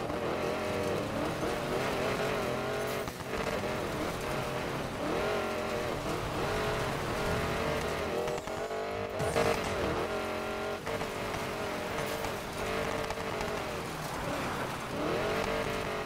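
Tyres skid and scatter gravel.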